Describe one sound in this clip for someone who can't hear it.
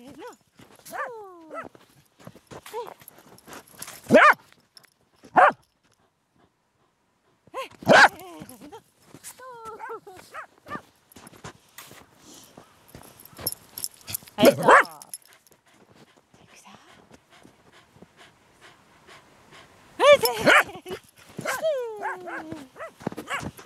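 A dog yelps and whines excitedly close by.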